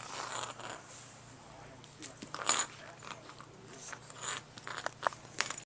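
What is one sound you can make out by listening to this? A puppy gnaws and chews on a soft toy close by.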